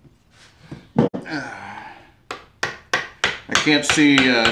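A mallet taps on wood.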